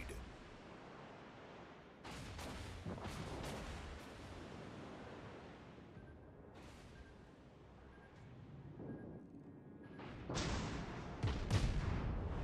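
Shells explode with heavy blasts.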